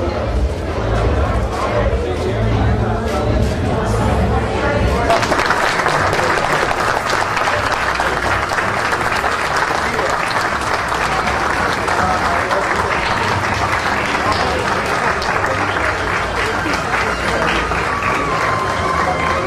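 A crowd of men and women chatters loudly in a large echoing hall.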